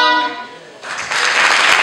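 A group of singers ends a song with a held chord in a hall.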